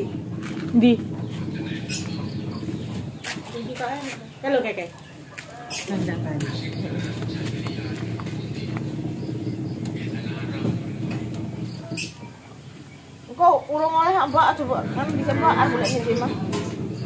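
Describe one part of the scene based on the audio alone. A woman speaks casually nearby.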